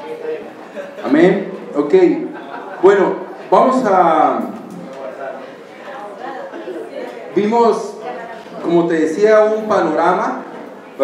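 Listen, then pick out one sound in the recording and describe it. A man speaks with animation into a microphone, heard through a loudspeaker in an echoing room.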